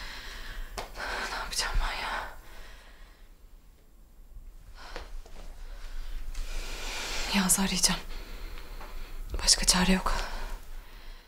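A young woman speaks quietly and anxiously to herself, close by.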